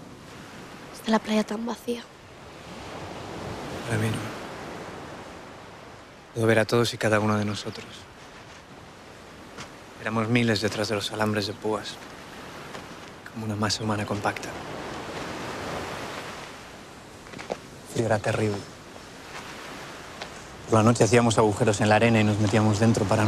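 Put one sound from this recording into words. A man speaks quietly close by.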